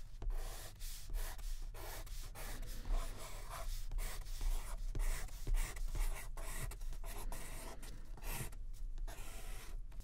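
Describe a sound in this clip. A felt-tip pen scratches across paper as it writes.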